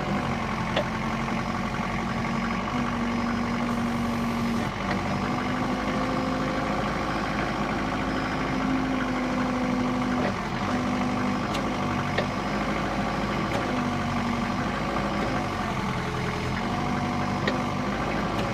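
A forklift's hydraulics whine as the clamp moves.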